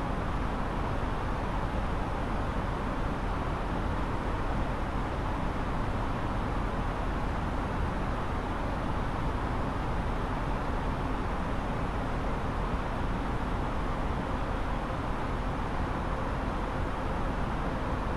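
Jet engines roar and air rushes steadily, heard from inside an aircraft in flight.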